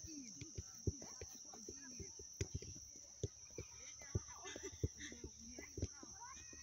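A ball is tapped and kicked repeatedly on grass.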